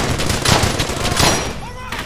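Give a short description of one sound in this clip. A rifle fires a close, sharp shot.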